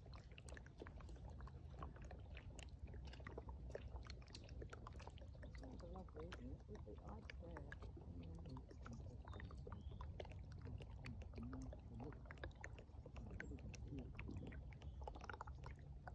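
Water trickles and gurgles over pebbles beneath a sheet of ice.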